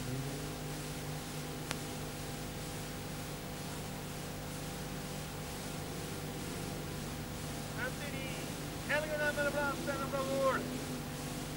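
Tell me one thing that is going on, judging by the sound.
Race car engines roar and rev on a dirt track.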